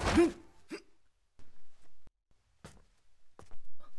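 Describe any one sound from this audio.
Swords swish through the air.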